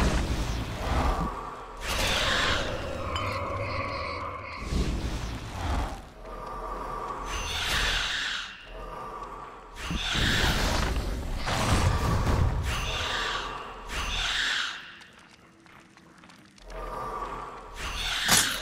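Skeletons clatter and break apart under blows.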